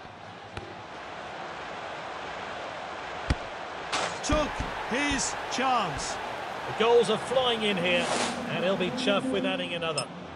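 A large stadium crowd cheers after a goal.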